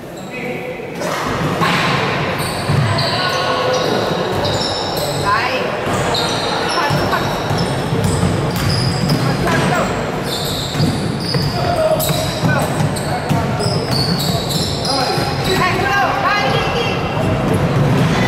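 Young men shout and call to each other across an echoing hall.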